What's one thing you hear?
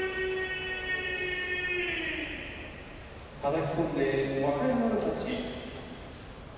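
A man chants a long, drawn-out call in a large echoing hall.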